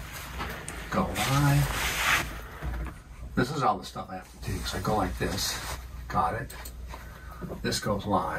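An elderly man speaks calmly into a nearby microphone.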